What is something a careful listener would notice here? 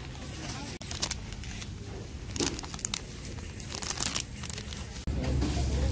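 A plastic bag crinkles as a hand handles it.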